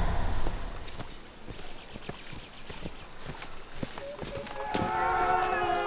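Footsteps crunch on leaves and twigs on the forest floor.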